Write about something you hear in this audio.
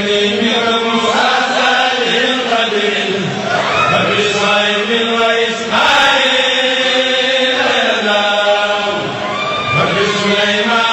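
A group of men sing together in chorus.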